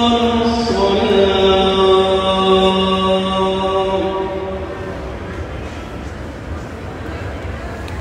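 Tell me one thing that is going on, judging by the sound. A crowd's footsteps shuffle across a hard floor.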